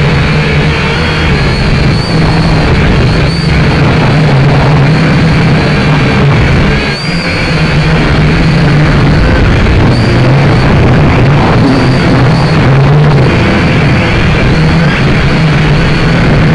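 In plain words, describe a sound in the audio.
Strong wind blows and buffets the microphone outdoors.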